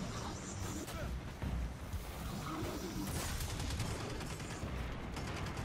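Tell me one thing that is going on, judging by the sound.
Gunfire bursts out rapidly.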